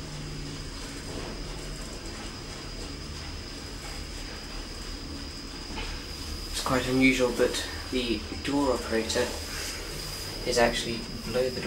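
A traction elevator hums as it travels.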